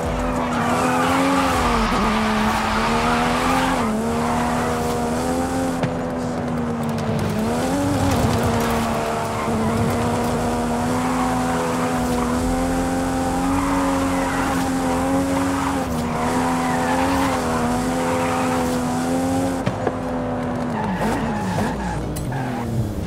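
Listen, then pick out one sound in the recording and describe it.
A sports car engine revs high and roars steadily.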